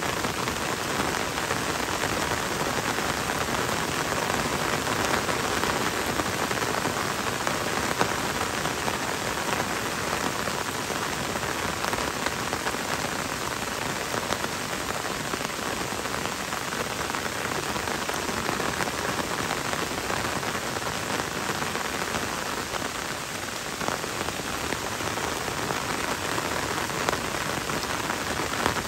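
Rain falls on leaves and a wet road in a forest.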